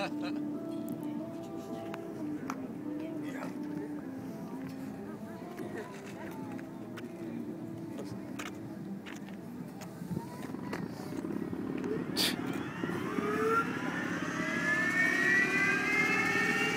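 A propeller plane's engine hums steadily nearby.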